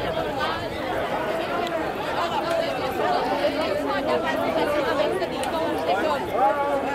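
A large crowd chants and shouts loudly nearby outdoors.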